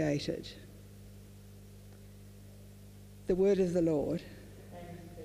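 An elderly woman reads aloud calmly into a microphone.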